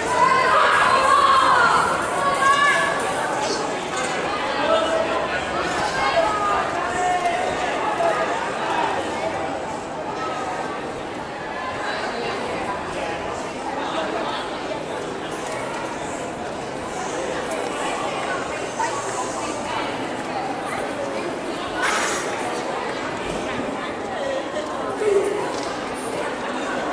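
A small crowd of spectators cheers and shouts outdoors.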